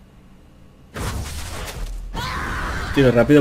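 A game effect bursts with a loud whoosh.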